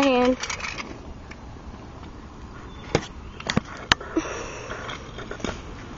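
Scooter wheels roll and rattle on pavement.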